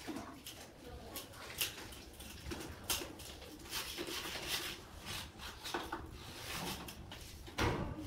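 Cement slurry pours from a bucket onto a floor.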